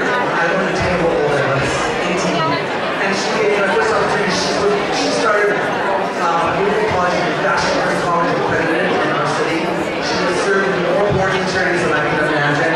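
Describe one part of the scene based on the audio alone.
A large crowd of men and women chatters in a big echoing hall.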